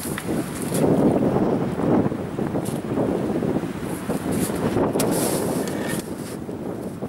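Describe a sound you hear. Wooden skis knock and rattle.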